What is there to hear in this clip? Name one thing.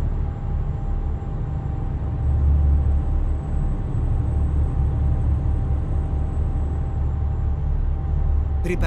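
A truck engine rumbles steadily at low pitch.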